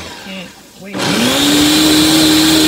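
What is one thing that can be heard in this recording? A blender starts up and quickly spins back up to speed.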